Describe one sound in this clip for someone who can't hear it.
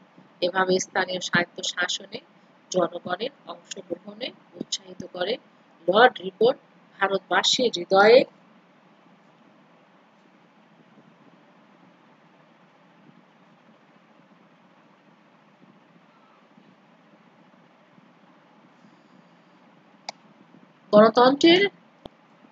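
A young woman speaks calmly and clearly into a microphone, reading out with pauses.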